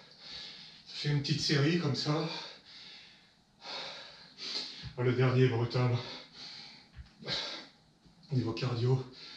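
A young man talks calmly and clearly, close by.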